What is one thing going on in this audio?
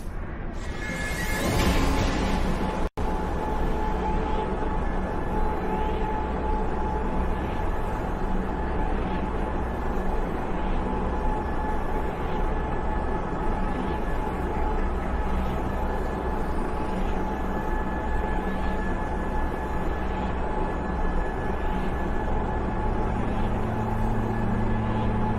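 A teleporter hums and whooshes into a steady, deep rushing roar.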